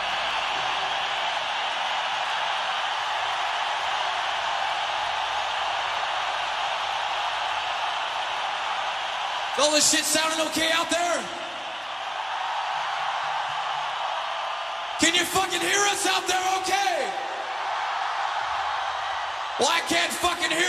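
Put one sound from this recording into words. A large crowd cheers and roars steadily in a big echoing hall.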